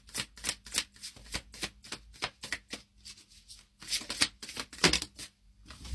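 Playing cards riffle and flick quickly as they are shuffled by hand.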